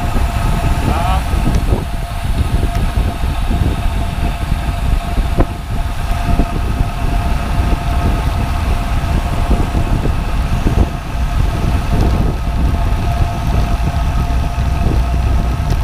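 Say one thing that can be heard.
Wind rushes loudly over the microphone of a moving bicycle.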